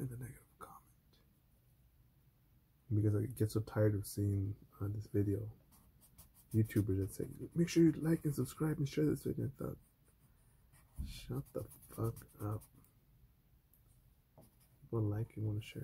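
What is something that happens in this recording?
A blending stick rubs softly on paper.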